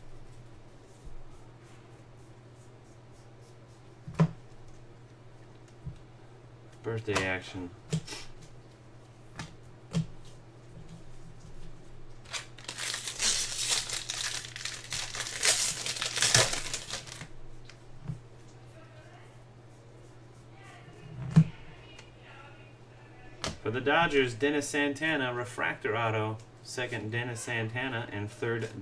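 Trading cards flick and tap as they are shuffled.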